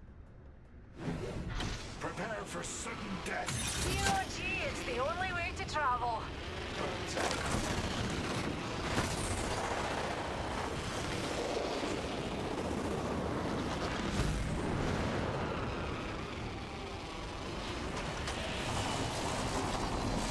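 Wind rushes loudly, as in a fast dive through the air.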